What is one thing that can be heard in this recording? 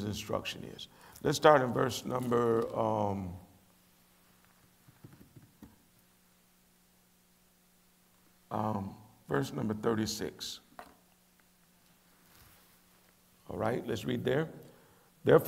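A middle-aged man reads out slowly and solemnly through a microphone, with pauses.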